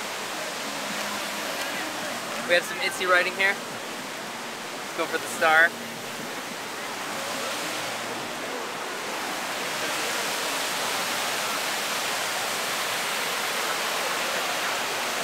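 Rushing river water roars steadily nearby.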